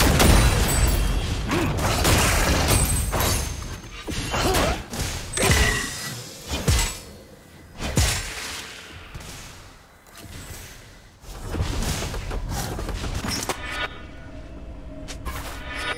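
Magic blasts and sword hits crackle and boom in a video game battle.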